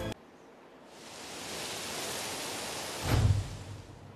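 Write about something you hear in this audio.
Wind gusts through trees, rustling leaves.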